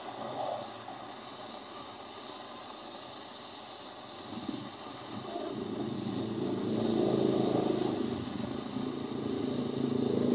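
A gas torch hisses and roars steadily.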